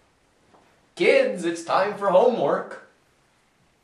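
A young man speaks loudly and with animation close by.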